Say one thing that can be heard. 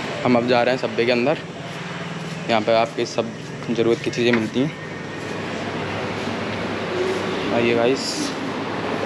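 A young man speaks close by in short bursts.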